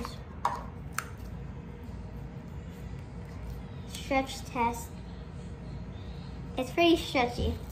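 Slime squelches and squishes as a child kneads and stretches it.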